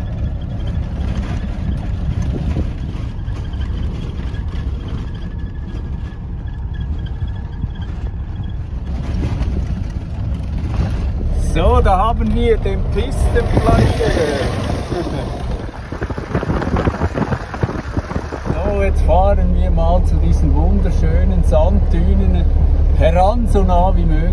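Tyres rumble and crunch over a rough dirt track.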